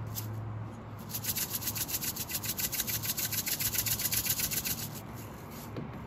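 Seeds rattle in a shaker as they are sprinkled out.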